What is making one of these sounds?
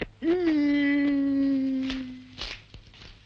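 A man lets out a long, loud wail.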